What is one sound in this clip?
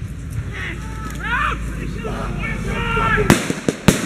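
Men shout in the distance.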